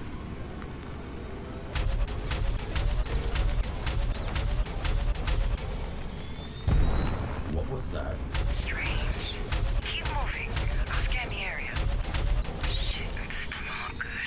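A motorbike engine roars at speed.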